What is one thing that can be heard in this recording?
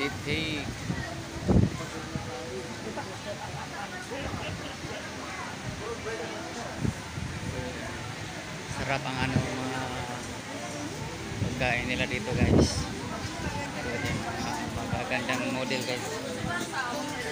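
A crowd murmurs.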